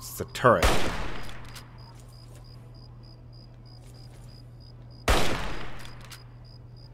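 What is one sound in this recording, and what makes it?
A rifle fires loud shots that echo and fade.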